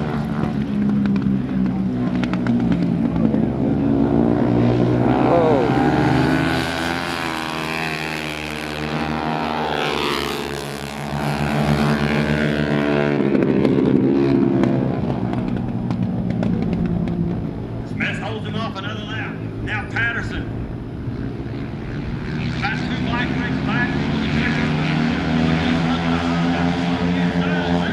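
A motorcycle engine roars and revs as it races past.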